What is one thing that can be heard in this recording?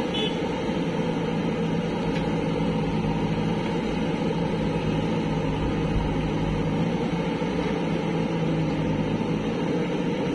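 A digger bucket scrapes through dirt.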